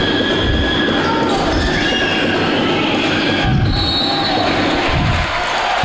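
A crowd of spectators murmurs and cheers in a large echoing hall.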